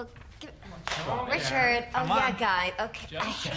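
A young woman speaks up.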